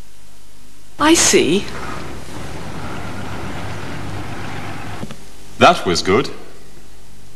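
A man speaks briefly with animation.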